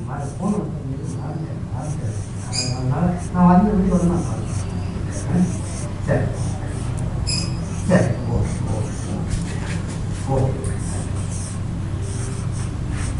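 A marker squeaks and scrapes on a whiteboard.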